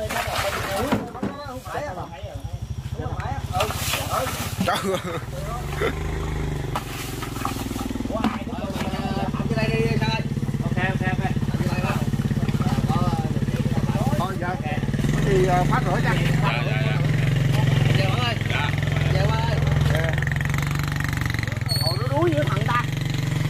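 Bamboo leaves rustle and snap as men push through them.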